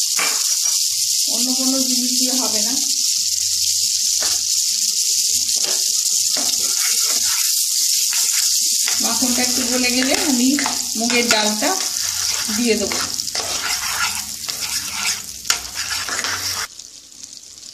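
Butter sizzles and crackles in a hot pan.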